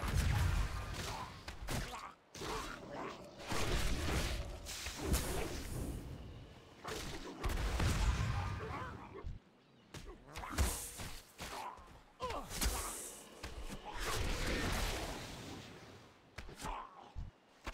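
Weapons clash and spells burst in a fantasy fight.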